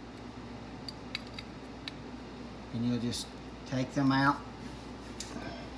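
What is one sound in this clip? A wrench clicks lightly against a metal fitting.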